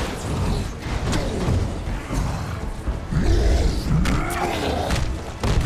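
A monster roars and growls deeply.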